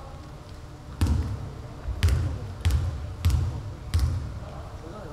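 A basketball bounces on a wooden floor, echoing in a large hall.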